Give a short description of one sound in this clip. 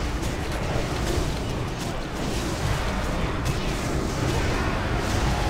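Magic spells crackle and burst in a fierce battle.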